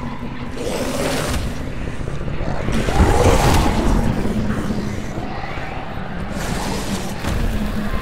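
A sword swings with a sharp whoosh.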